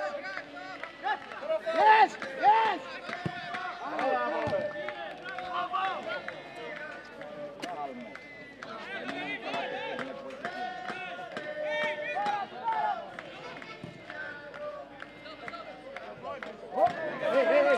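Young men shout and call out to each other across an outdoor pitch.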